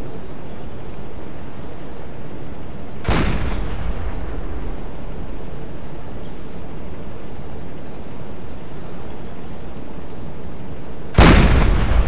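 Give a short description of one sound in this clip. Sea water rumbles and washes steadily.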